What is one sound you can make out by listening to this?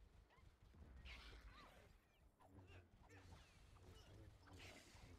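Small plastic bricks burst apart and clatter.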